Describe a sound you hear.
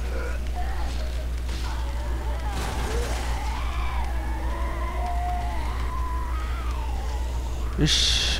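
A creature growls and snarls close by.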